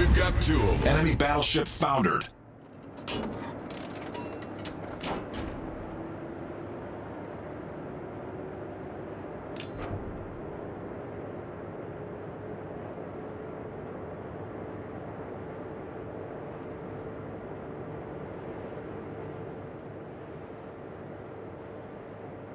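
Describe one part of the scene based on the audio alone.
A warship's engines rumble steadily as it cuts through the water.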